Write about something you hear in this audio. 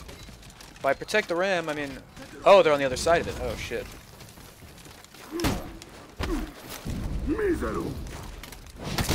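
A young man speaks with animation into a nearby microphone.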